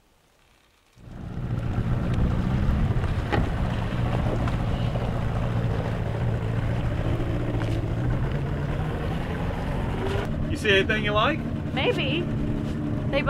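A boat's outboard motor hums steadily outdoors.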